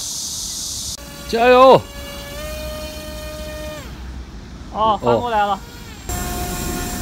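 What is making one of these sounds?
A small motor buzzes as a model plane skims across the water.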